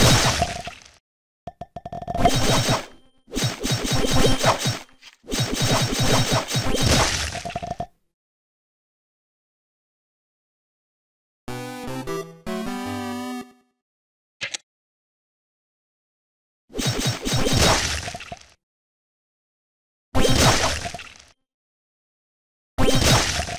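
Video game battle sound effects clash and crash in quick bursts.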